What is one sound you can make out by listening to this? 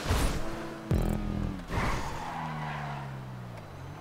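Tyres screech as the van drifts around a bend.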